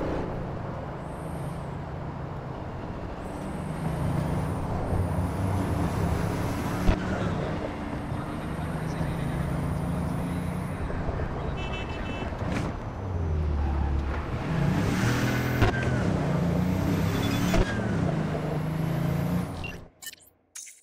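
A sports car engine revs hard and shifts gears.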